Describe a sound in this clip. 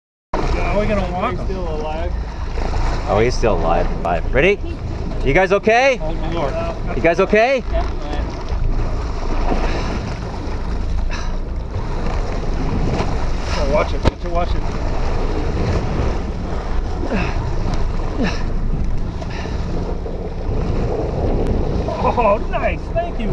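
Waves slosh against a boat's hull.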